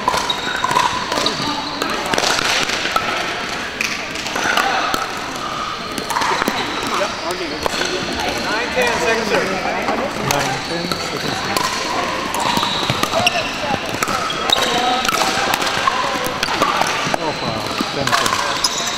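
Paddles pop against a plastic ball in a large echoing hall.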